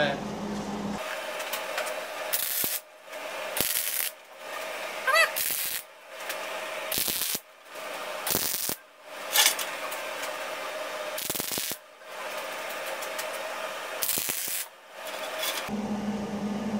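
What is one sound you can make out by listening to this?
An arc welder crackles and sizzles in short bursts.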